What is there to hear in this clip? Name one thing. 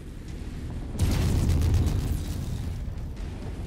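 A large explosion booms.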